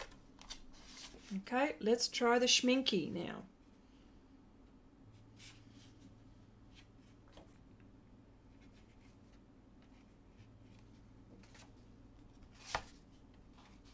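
Paper sheets rustle as they are lifted and turned.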